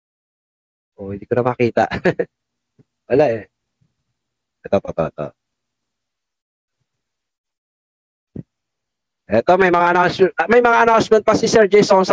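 A man talks with animation into a microphone, in bursts with pauses.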